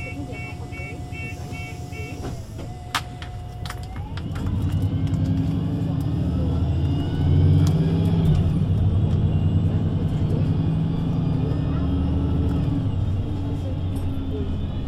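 A bus engine rumbles nearby and grows louder.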